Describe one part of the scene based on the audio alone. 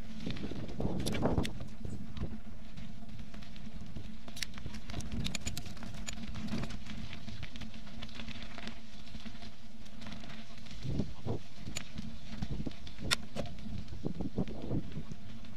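A bicycle frame rattles and clanks over bumps.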